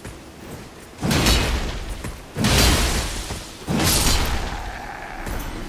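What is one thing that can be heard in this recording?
A blade swings and strikes a body with heavy, wet impacts.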